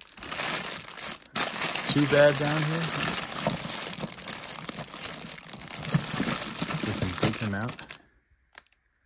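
Plastic toys clatter against each other.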